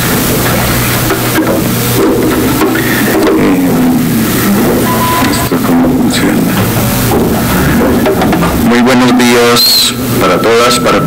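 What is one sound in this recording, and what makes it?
An older man speaks calmly into a microphone in a large room.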